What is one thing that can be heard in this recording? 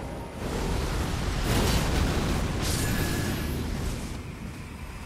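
Flames roar and crackle in a loud burst.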